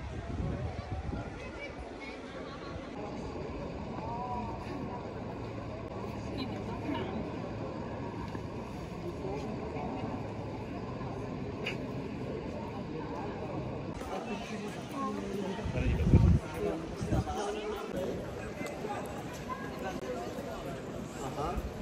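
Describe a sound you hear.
A crowd murmurs and chatters in an open outdoor space.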